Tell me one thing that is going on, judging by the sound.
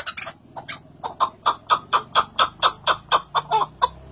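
A pigeon calls close by in quick, repeated bursts.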